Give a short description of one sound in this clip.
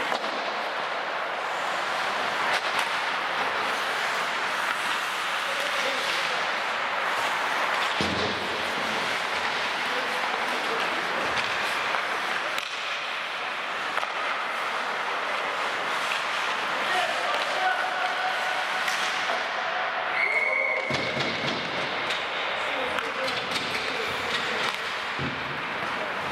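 Hockey sticks clack against the puck and ice.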